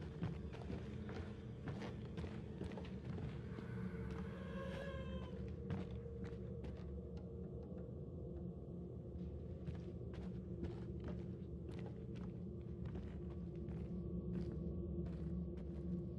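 Footsteps tread on wooden floorboards.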